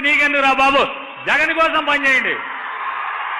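A man shouts forcefully into a microphone, heard through loudspeakers.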